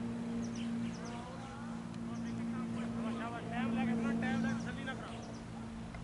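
A man calls out across an open field, some distance away.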